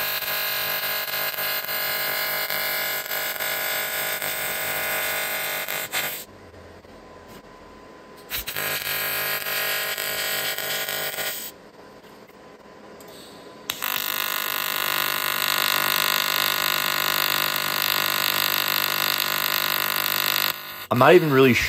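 A welding torch buzzes and crackles steadily in bursts.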